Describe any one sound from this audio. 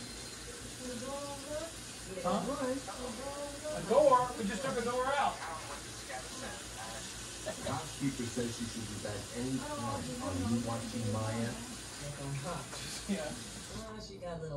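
An elderly woman talks calmly at a distance in the room.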